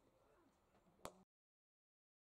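A cricket bat sharply strikes a ball.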